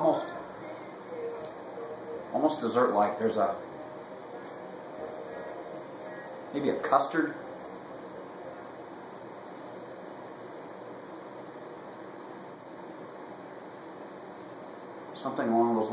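A middle-aged man speaks calmly close by, in short bursts with long pauses.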